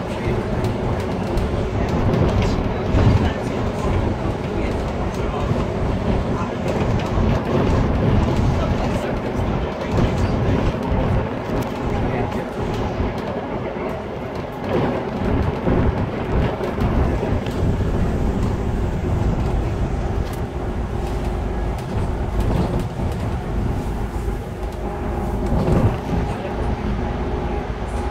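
The bus interior rattles and creaks over the road.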